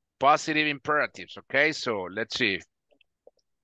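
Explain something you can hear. A man speaks calmly into a close microphone, as on an online call.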